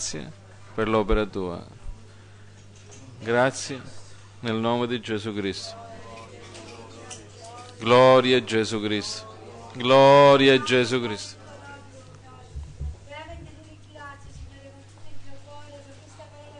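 A middle-aged man speaks with animation into a microphone, in pauses.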